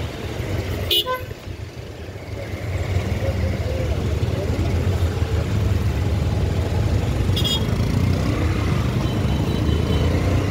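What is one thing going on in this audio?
Motorcycle engines idle and rumble in busy street traffic.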